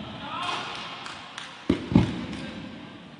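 Hockey sticks clack against a ball and strike the boards with sharp knocks.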